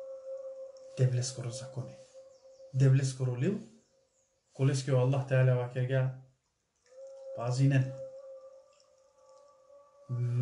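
A man speaks calmly and close to the microphone, in short phrases with pauses.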